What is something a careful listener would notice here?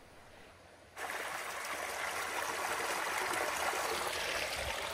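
A small stream of water trickles and splashes over rocks close by.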